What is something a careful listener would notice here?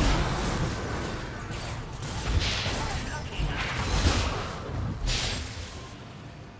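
Magic blasts whoosh and crash in a video game battle.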